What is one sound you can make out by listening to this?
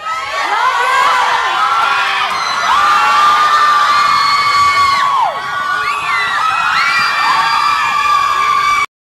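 A crowd of young women screams and shrieks loudly close by.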